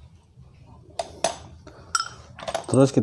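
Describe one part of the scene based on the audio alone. Metal engine parts clink and knock as they are handled.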